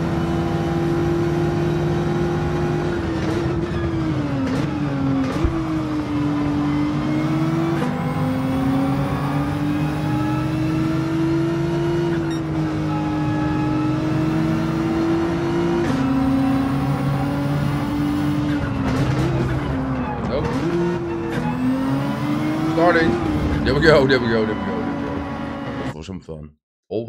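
A racing car engine roars and revs up and down as gears shift.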